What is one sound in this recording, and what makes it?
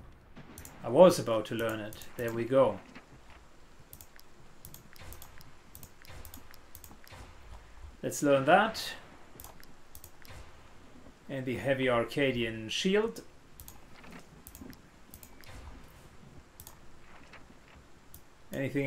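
Soft interface clicks tick now and then as menu buttons are pressed.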